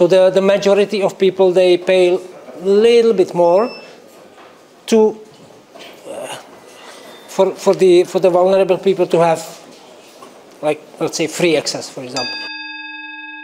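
A middle-aged man speaks with animation into a microphone in an echoing room.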